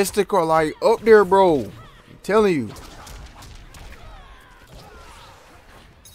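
Punches and blows thud and crack in a video game fight.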